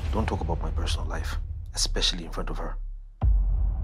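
A man speaks firmly, close by.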